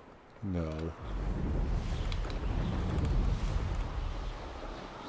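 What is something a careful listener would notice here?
Wind rushes loudly past during fast flight.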